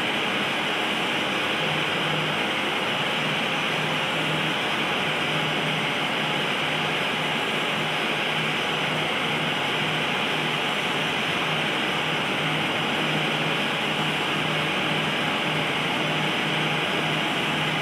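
Jet engines roar steadily as an airliner taxis.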